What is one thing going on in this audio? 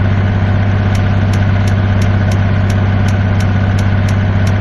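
A turn signal ticks rapidly.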